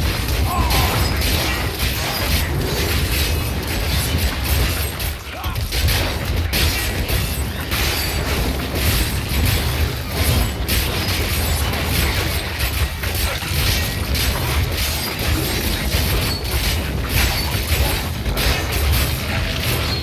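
Game combat sounds of blows and spells clash rapidly.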